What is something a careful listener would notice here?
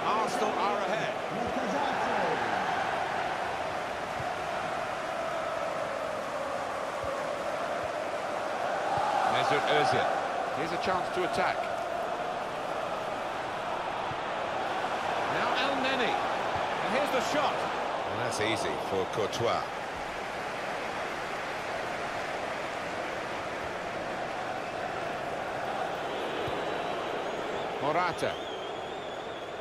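A stadium crowd murmurs and chants steadily.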